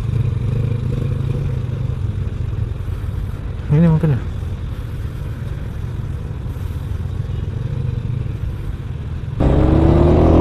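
A motorcycle engine idles close by in traffic.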